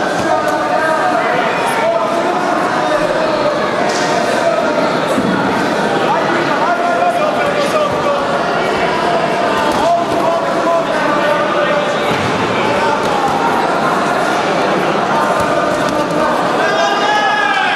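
Gloved punches thud against a fighter.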